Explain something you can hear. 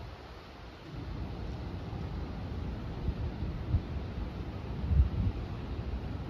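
Water ripples gently along a stone bank.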